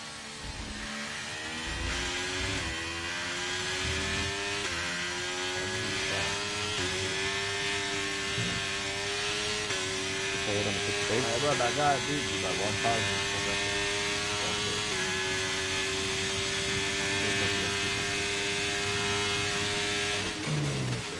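A racing car engine revs high and climbs through the gears.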